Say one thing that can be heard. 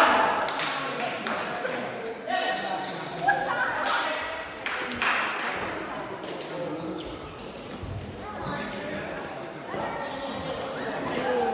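Sports shoes squeak on the floor.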